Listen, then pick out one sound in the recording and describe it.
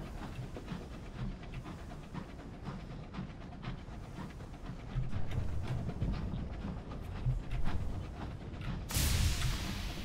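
A submarine's engine hums low and steadily underwater.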